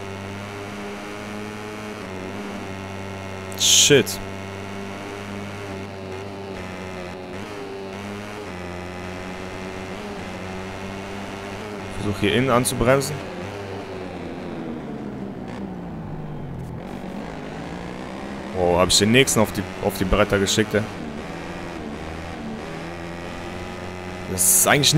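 A motorcycle engine whines at high revs, its pitch dropping as it slows for corners and rising again as it speeds up.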